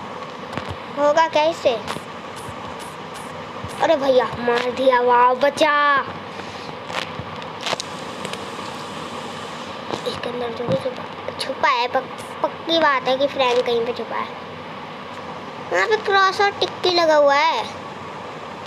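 A boy talks with animation, close to a microphone.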